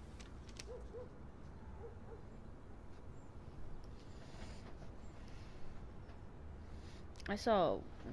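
Paper rustles softly in hands.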